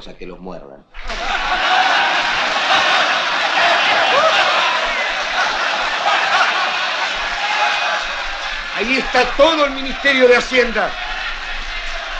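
A crowd murmurs and clamours loudly throughout a large hall.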